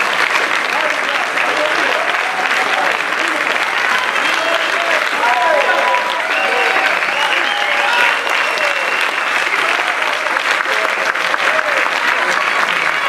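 An audience of men and women cheers and whoops.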